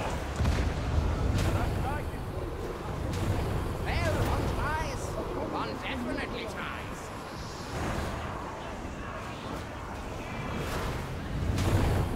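Electric crackling and sizzling bursts rise and fade.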